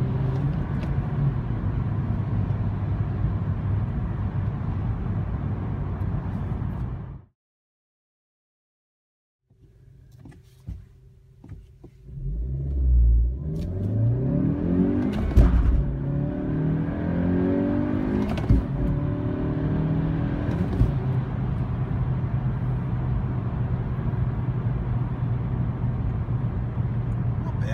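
Engine and road noise fill a car's cabin at highway speed.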